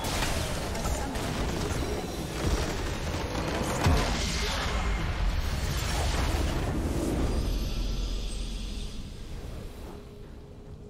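A huge crystal bursts apart with a loud, deep rumbling blast.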